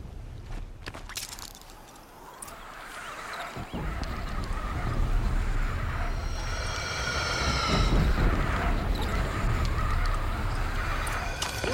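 A zipline whirs as someone slides quickly along a rope.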